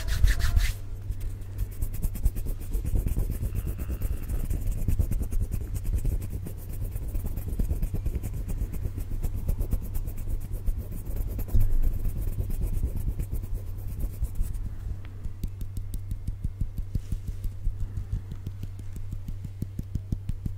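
Palms rub together close to a microphone.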